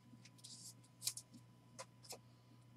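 Cards click and tap sharply against a box.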